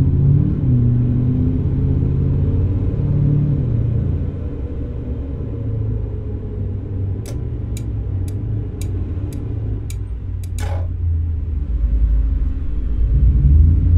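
A car engine hums steadily as the car slows down.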